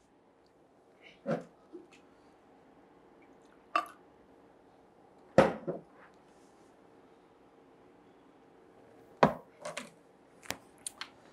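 A plastic bottle crinkles and knocks on a table.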